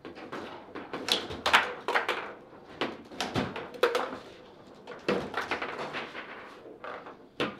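Handles rattle and spin with quick knocks.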